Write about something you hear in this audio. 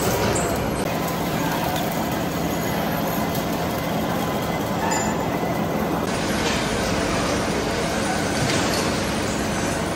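Metal chips clink and rattle as they fall.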